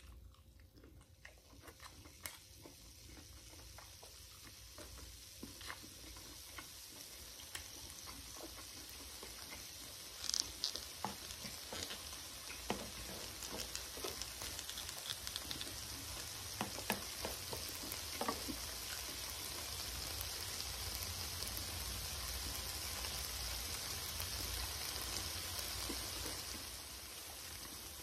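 Food sizzles steadily on a hot pan.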